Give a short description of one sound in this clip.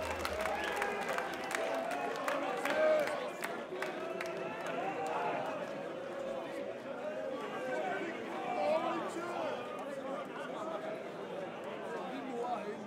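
A crowd of men and women chatters loudly in a large echoing hall.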